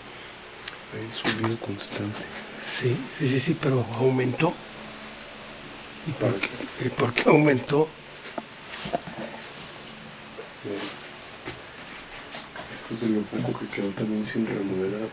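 An older man speaks quietly close by.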